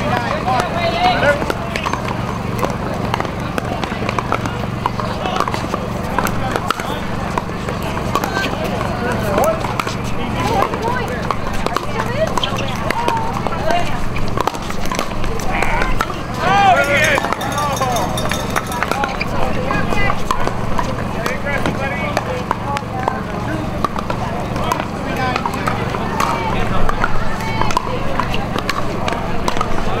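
A crowd of spectators chatters nearby outdoors.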